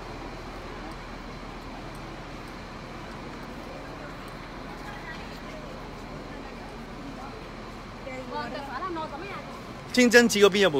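A crowd of men and women chatters nearby.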